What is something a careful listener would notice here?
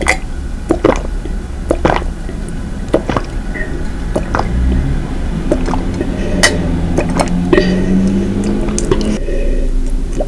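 A woman gulps milk loudly close to a microphone.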